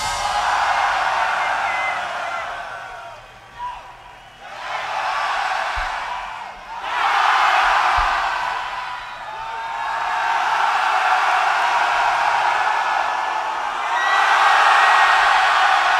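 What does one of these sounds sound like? A large crowd cheers and shouts loudly in a big open space.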